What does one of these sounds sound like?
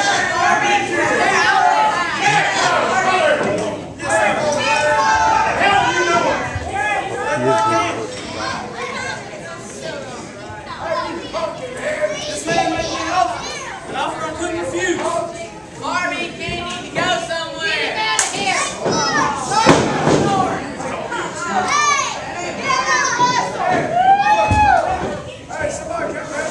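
A man announces loudly through a microphone over loudspeakers in an echoing hall.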